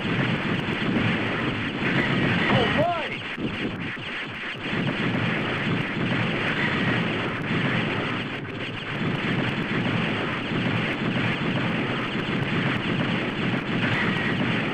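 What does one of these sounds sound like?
Retro arcade-style video game gunfire and explosions crackle.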